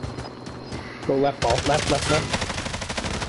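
A man talks into a headset microphone with animation.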